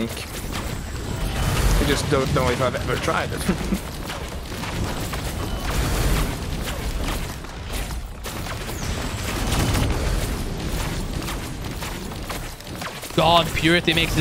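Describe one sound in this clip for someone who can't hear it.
Swords swish and clash with combat effects.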